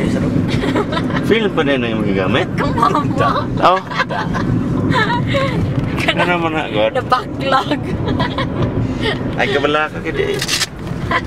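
A woman talks and laughs close by.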